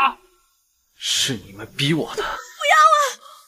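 A second young man speaks close by, bitterly.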